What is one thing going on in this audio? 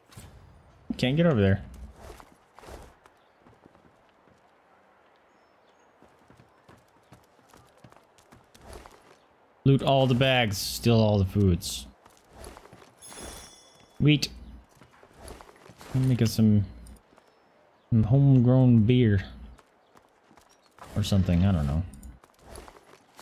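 An adult man speaks in bursts into a close microphone.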